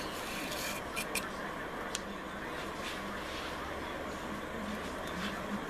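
A drill bit grinds steadily into spinning wood.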